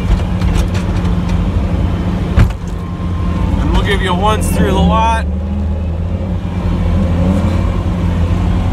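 A truck engine rumbles steadily up close.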